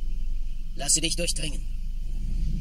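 A man speaks with animation.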